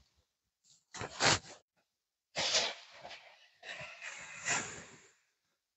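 Boots crunch through snow.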